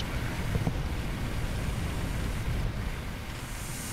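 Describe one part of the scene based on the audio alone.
Water sprays hard from a fire hose.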